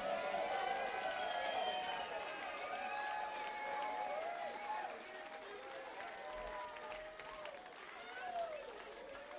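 An electric guitar plays a bending, wailing solo.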